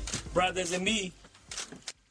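A young man sings close to a microphone.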